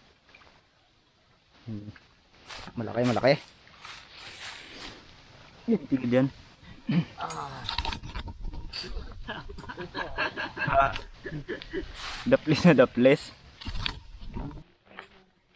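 Water sloshes as a man wades through a shallow stream.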